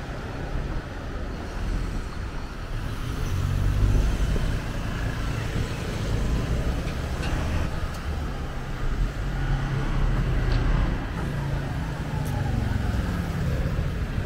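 Outdoor street traffic murmurs steadily.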